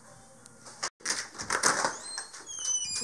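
A door latch clicks and rattles.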